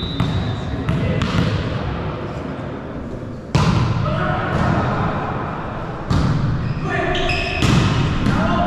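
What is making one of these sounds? A volleyball is struck hard and thuds in a large echoing hall.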